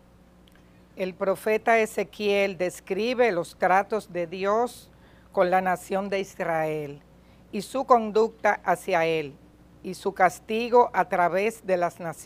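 A woman speaks calmly and clearly into a microphone in a reverberant hall.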